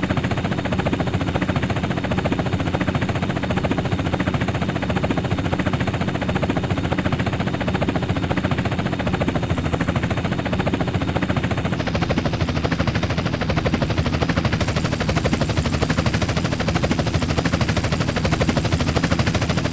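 Helicopter rotor blades chop rapidly and steadily close by.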